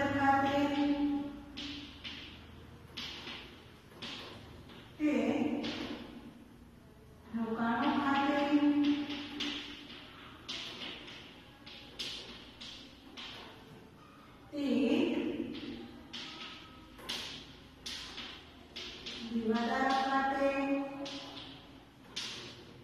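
A woman speaks calmly and slowly.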